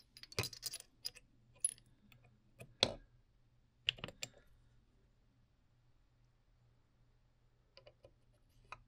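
Metal parts click and clink as they are handled.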